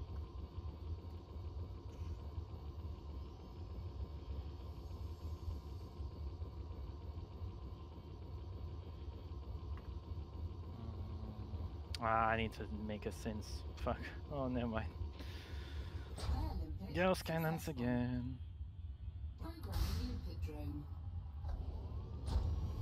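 A spaceship's engines hum with a low, steady drone.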